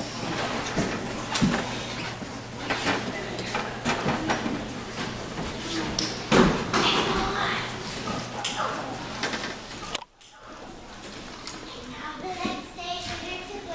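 Footsteps thud and shuffle on a wooden stage.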